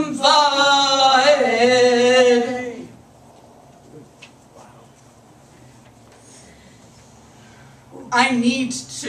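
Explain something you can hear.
A middle-aged woman sings through a microphone, holding long notes.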